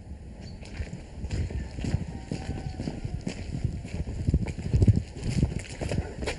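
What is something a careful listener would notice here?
Footsteps crunch on the ground outside.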